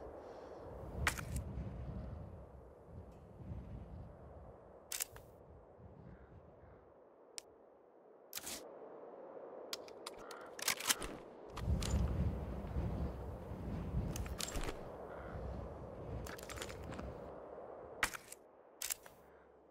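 Short clicks sound as game menus open and close.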